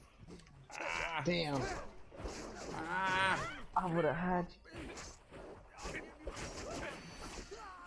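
Swords clash and strike in quick blows.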